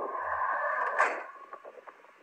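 A van's sliding door slams shut.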